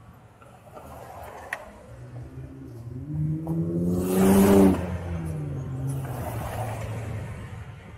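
Cars pass by on the road.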